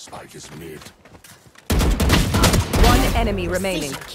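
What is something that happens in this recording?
Rapid gunshots fire close by.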